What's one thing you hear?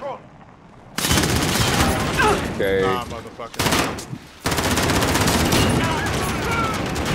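A machine gun fires rapid bursts, loud and close.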